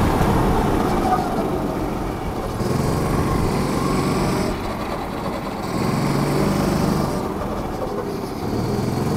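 A go-kart engine buzzes loudly and rises and falls in pitch as it speeds up and slows down.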